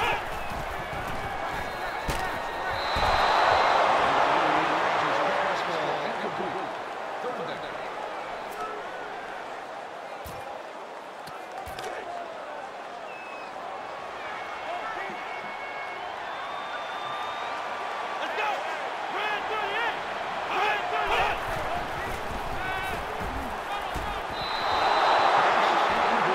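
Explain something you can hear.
A large stadium crowd roars loudly, swelling and then fading.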